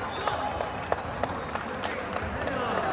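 Players clap their hands in rhythm.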